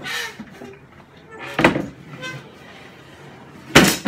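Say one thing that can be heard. A wooden frame scrapes and knocks against a wooden table.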